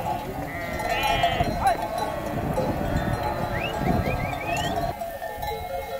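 Sheep bleat all around.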